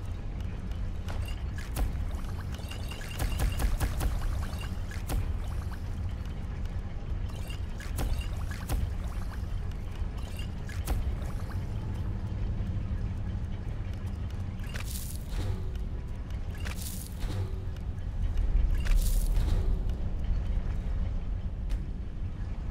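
Soft game menu clicks tick as items are picked.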